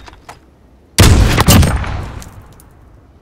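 A sniper rifle fires a single loud shot that echoes.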